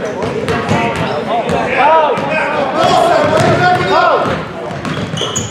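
A crowd of spectators shouts and cheers nearby.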